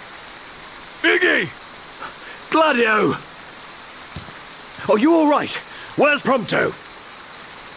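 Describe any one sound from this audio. A young man speaks tensely.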